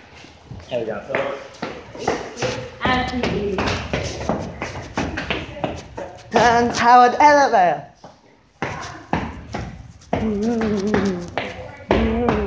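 Footsteps tap on hard stairs.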